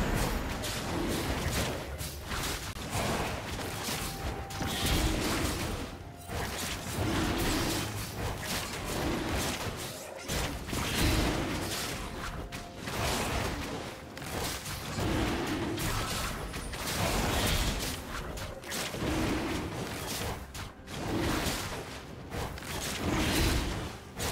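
Fantasy combat sound effects clash and whoosh in quick bursts.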